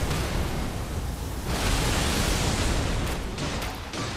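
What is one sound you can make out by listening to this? A huge creature slams onto a stone floor with a heavy crash.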